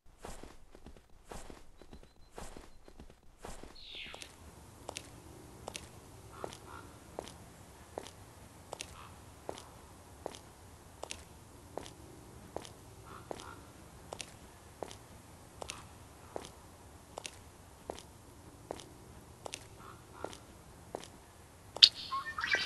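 A walrus flops heavily across snow with steady, regular slapping steps.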